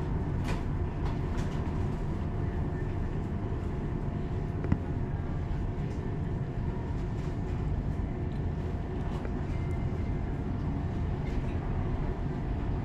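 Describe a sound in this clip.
A tram rumbles steadily along its tracks.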